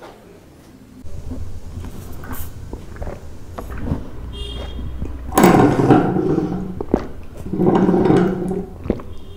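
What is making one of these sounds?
A man slurps a drink loudly through a long straw.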